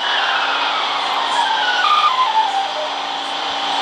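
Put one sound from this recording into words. A subway train's motor whines, falling in pitch as the train slows.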